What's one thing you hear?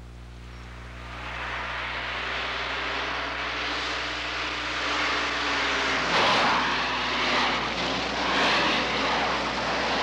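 Tyres skid on loose dirt.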